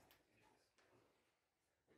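A chess clock button is pressed with a click.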